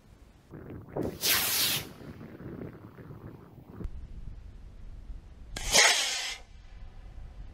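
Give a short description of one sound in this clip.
A model rocket motor ignites and shoots off with a loud rushing hiss.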